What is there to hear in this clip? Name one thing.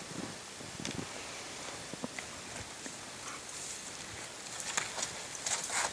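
Twigs snap and rustle underfoot.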